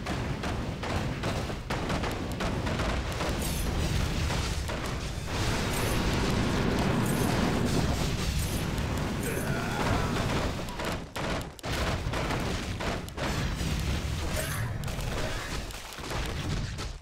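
Game battle sounds of clashing weapons and spell blasts ring out continuously.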